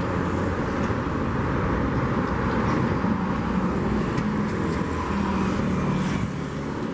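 A train rumbles steadily along the tracks at a distance.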